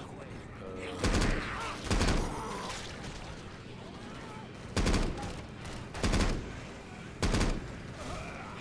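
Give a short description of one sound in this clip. A rifle fires single loud shots, one at a time.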